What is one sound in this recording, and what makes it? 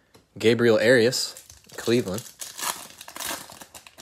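A plastic wrapper crinkles and rustles.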